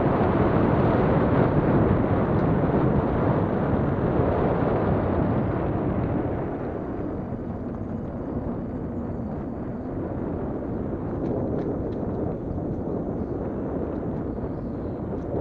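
Wind rumbles loudly against a moving microphone outdoors, easing after a few seconds.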